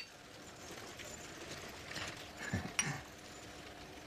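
Liquid pours into a glass.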